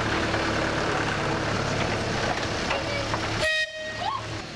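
A small steam locomotive chugs and rumbles close by.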